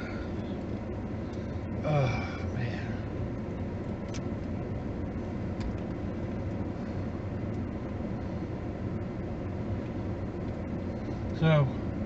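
A car engine hums steadily with road noise inside the car.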